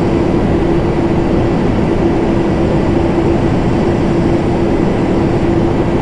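Jet engines drone steadily with a low, constant hum.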